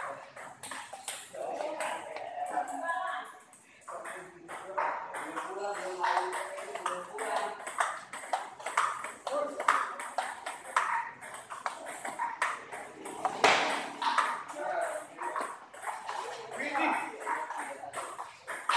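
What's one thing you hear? Table tennis balls click sharply on paddles and tables in a quick rally.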